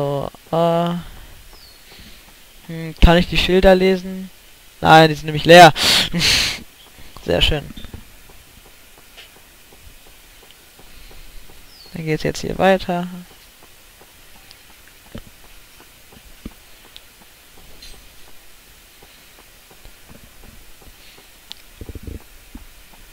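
Quick footsteps patter on a dirt path.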